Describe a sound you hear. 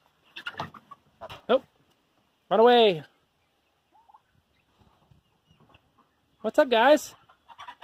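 Chickens cluck softly.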